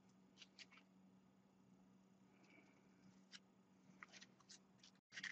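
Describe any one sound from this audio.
Aluminium foil crinkles and rustles as hands squeeze it.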